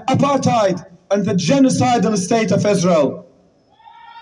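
A young man shouts forcefully into a microphone over a loudspeaker.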